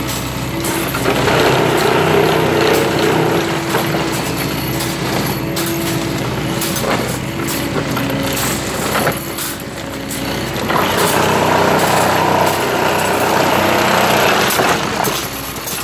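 Steel tines vibrate and crunch into the ballast stones.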